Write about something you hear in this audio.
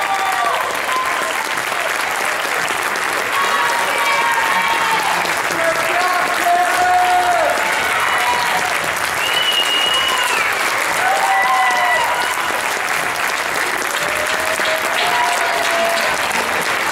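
A large audience applauds loudly in a hall.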